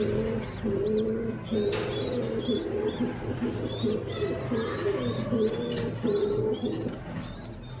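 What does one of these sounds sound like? A pigeon coos low and steadily.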